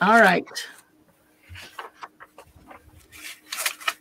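A sheet of paper rustles.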